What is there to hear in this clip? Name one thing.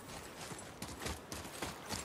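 Heavy footsteps splash through shallow water.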